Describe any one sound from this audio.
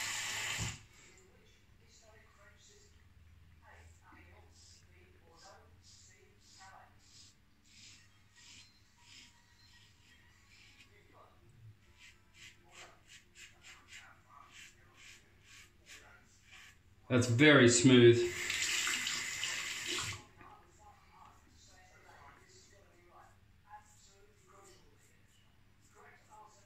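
A razor scrapes through stubble in short, rasping strokes.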